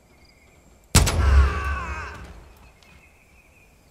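A pistol fires a single loud shot that echoes outdoors.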